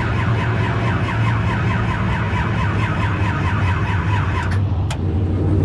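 A race car engine roars loudly up close.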